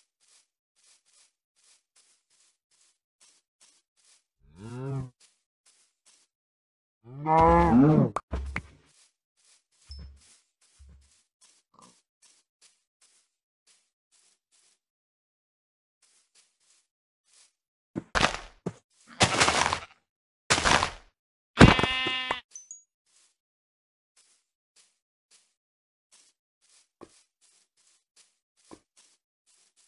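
Footsteps rustle through grass at a steady pace.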